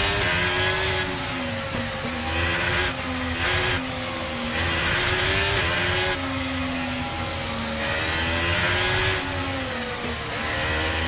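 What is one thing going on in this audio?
A racing car engine screams, rising and falling in pitch as the gears shift.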